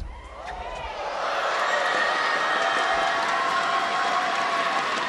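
A large crowd cheers and applauds loudly in an echoing hall.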